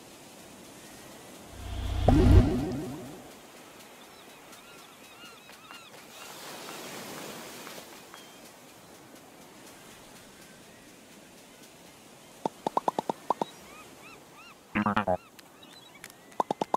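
Gentle waves lap at a shore.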